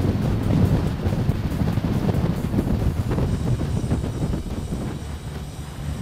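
Bicycle tyres hum on a paved path.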